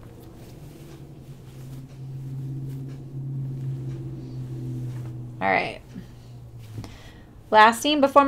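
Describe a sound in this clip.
Soft fabric rustles as it is handled.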